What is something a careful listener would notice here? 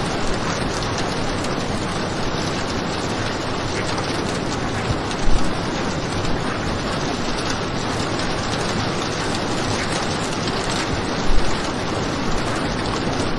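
Heavy rain pours down steadily outside a window.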